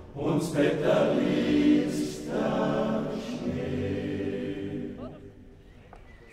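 A men's choir sings together in harmony outdoors.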